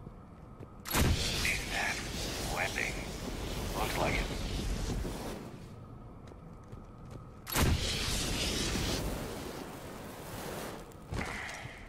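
Explosions boom and roar in bursts.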